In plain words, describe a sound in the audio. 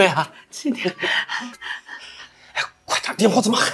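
A middle-aged woman laughs up close.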